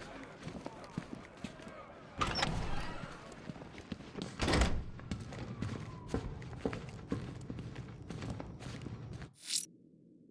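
Heavy boots thud on a hard floor.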